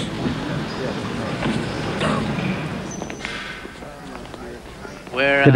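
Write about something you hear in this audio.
A crowd murmurs and chatters in a busy hall.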